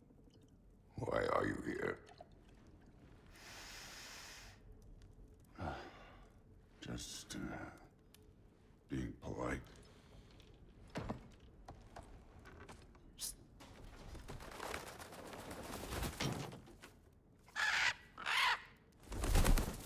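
A man speaks in a deep, gruff voice, close by.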